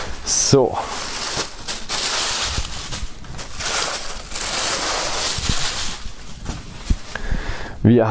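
Cloth rustles softly as hands unfold it.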